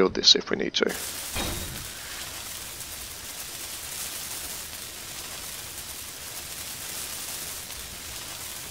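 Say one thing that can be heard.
A welding torch hisses and crackles steadily.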